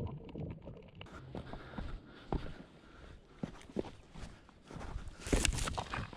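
Footsteps crunch on dry dirt and loose stones.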